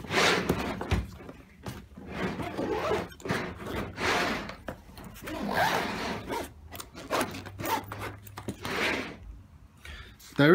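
Hands rub and pat a stiff fabric bag.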